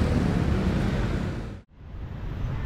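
Motor scooters hum past on a busy street.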